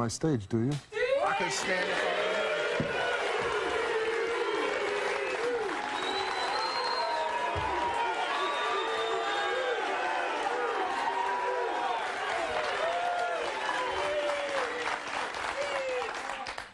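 A studio crowd cheers, whoops and shouts loudly.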